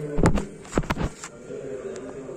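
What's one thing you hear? Fingers brush and knock against a phone's microphone.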